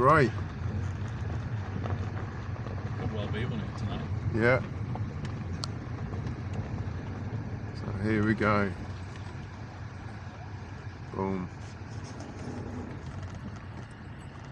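A car engine hums low and steady as the car rolls slowly.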